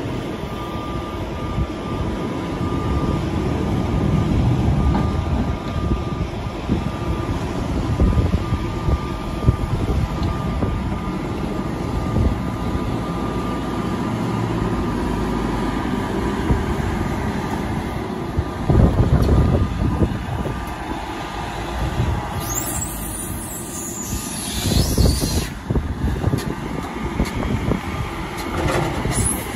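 A diesel loader engine rumbles and revs nearby.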